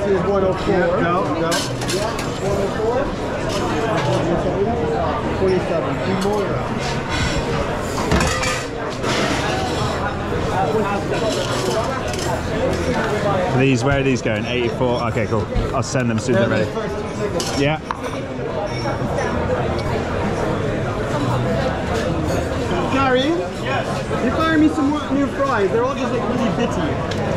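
Many people chatter in a busy, noisy room.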